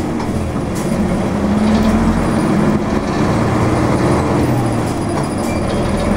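A bus drives past nearby with a low engine rumble.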